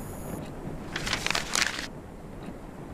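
A sheet of paper rustles as it is picked up.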